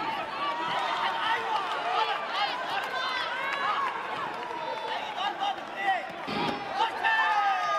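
A kick thuds against a padded body protector.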